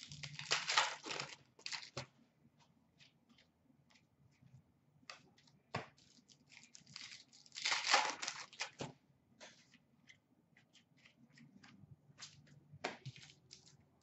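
Trading cards rustle and slide as they are sorted by hand.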